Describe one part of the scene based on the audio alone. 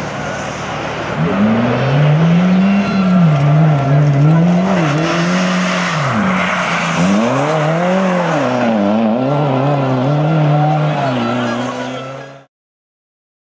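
A rally car engine revs hard and roars, rising and falling in pitch.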